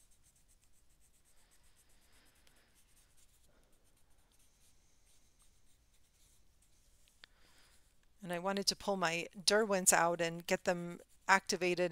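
A pastel stick scratches softly across paper.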